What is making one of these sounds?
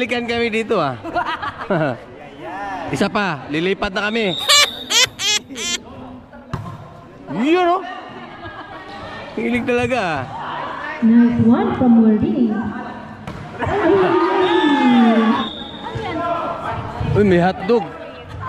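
Children shout and cheer loudly nearby in an echoing space.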